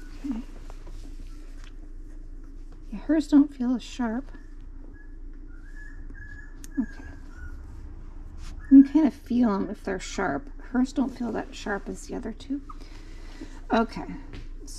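Nail clippers snip a puppy's claws with small clicks.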